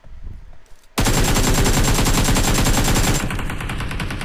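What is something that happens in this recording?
Rapid automatic gunfire rattles loudly and close.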